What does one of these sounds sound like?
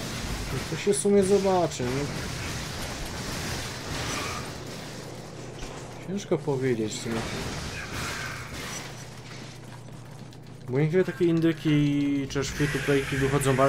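Gunshots and blasts ring out from a video game.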